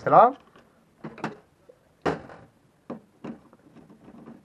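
Plastic parts click and knock together as they are handled.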